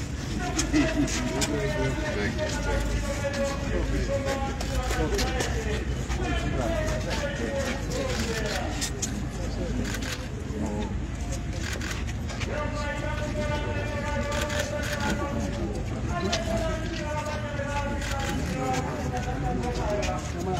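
A group of men talk nearby, outdoors.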